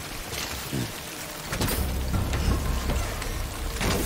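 A vehicle door opens with a clunk.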